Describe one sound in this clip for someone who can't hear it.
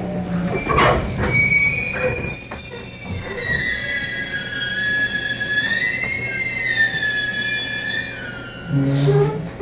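A train's electric motor whines, rising and shifting in pitch as the train pulls away.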